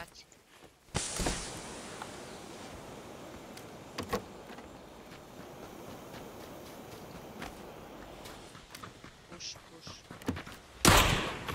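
Footsteps run across the ground.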